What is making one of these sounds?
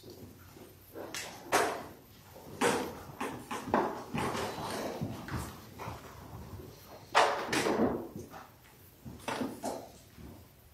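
People shuffle and rustle as they rise from wooden pews.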